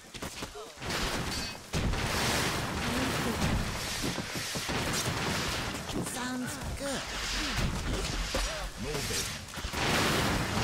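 Weapons clash and thud in a noisy battle.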